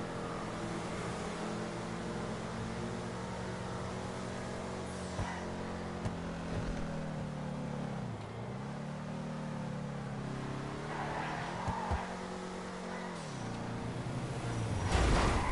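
A car engine hums steadily, its pitch dipping and rising as it slows and speeds up.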